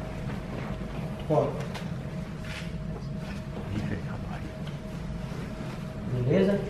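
Two grapplers shuffle and thud on a padded mat.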